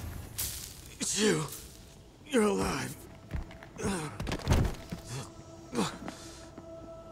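A man speaks weakly and hoarsely, close by.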